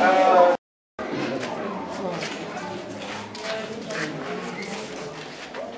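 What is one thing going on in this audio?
Several adults talk and murmur nearby.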